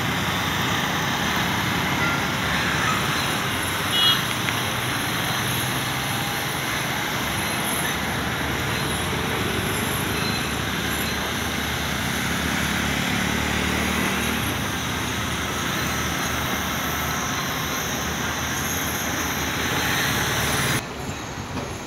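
City traffic rumbles steadily from the road below.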